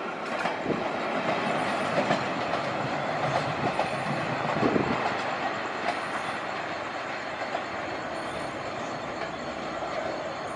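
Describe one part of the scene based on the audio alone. A distant locomotive approaches along the track.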